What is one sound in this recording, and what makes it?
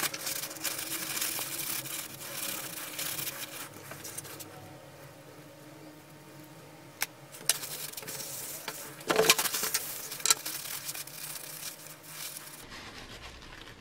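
Paper towel crinkles and rustles as it is rubbed.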